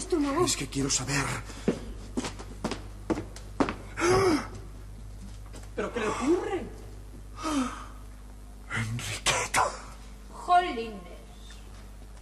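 A man speaks with emotion into a microphone.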